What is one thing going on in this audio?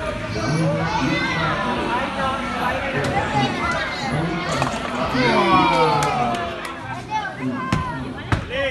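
A bowling ball rolls down a wooden lane with a low rumble.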